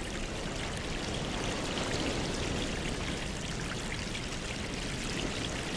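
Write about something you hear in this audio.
Air bubbles rise and gurgle steadily in water.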